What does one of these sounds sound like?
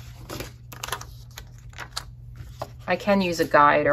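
A sticker peels and crinkles off its backing sheet.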